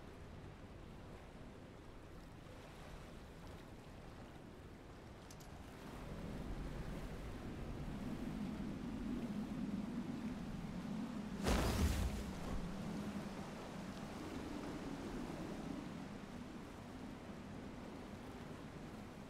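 A vessel churns through rough water.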